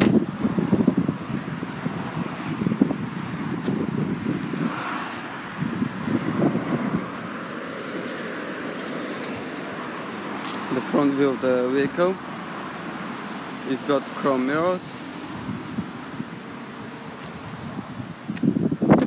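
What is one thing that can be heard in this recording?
Wind gusts against the microphone outdoors.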